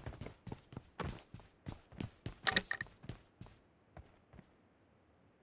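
Footsteps thud quickly on hard floors and stairs.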